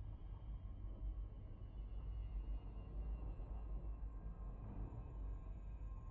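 A spaceship's engine hums with a low, steady rumble.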